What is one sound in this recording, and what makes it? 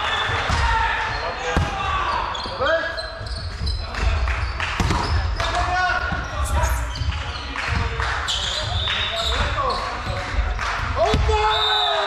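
A volleyball is struck with a hand with a sharp slap.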